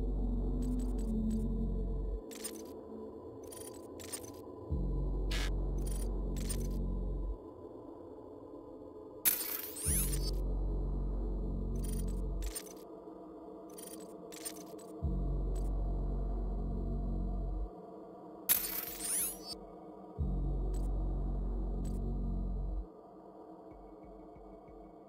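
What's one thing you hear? Short game menu clicks tick now and then.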